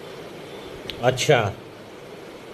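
A man speaks briefly and calmly close to the microphone.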